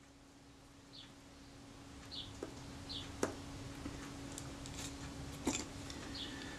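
Metal tweezers tick and click lightly against small parts.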